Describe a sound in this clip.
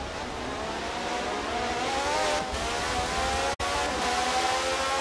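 A racing car engine whines at high revs, its pitch climbing as it speeds up.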